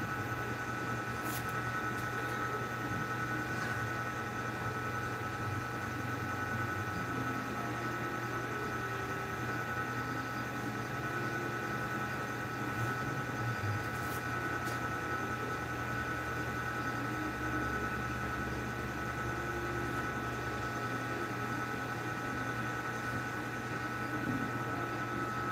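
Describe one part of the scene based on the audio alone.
A machine hums steadily close by.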